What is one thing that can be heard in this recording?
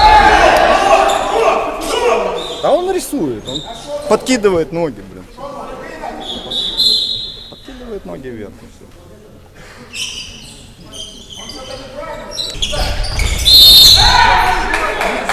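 Young men shout and call out nearby.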